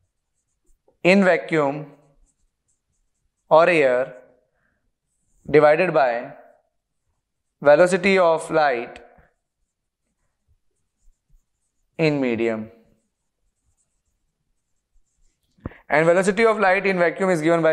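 A man speaks clearly in short phrases, close to a microphone.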